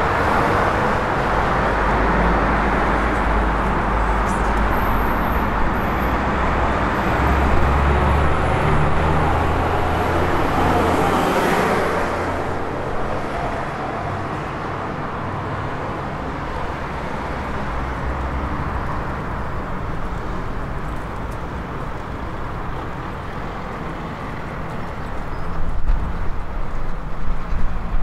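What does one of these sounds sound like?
Town traffic hums steadily in the distance.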